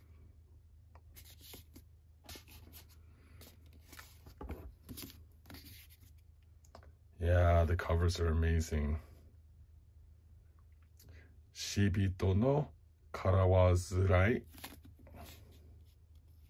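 Paperback books rustle and slide against each other as hands handle them.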